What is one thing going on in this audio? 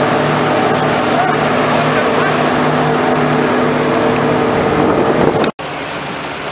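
A combine harvester engine roars loudly while threshing.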